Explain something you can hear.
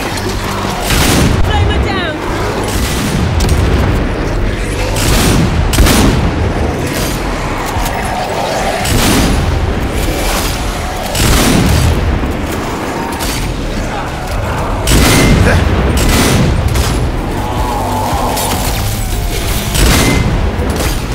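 Gunshots ring out again and again.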